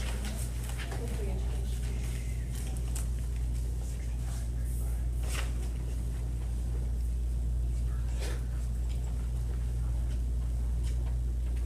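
Paper rustles as pages are handled.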